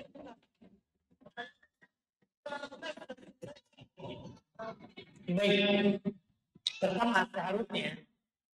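A man speaks calmly through a microphone, with pauses.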